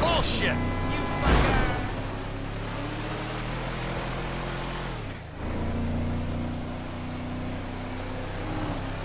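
A truck engine drones steadily as it drives along a road.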